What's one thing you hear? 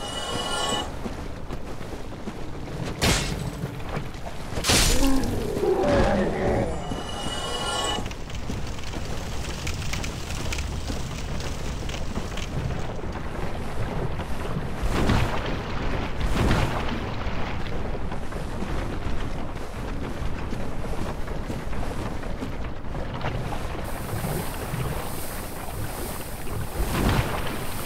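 Armored footsteps crunch over dirt.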